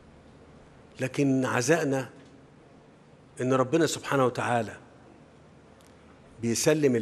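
A middle-aged man gives a formal speech into a microphone, speaking slowly in short phrases with pauses.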